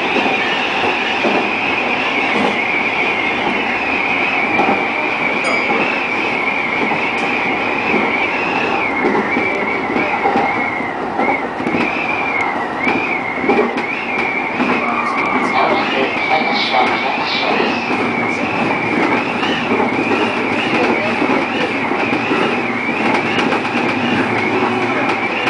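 Train wheels clatter over rail joints.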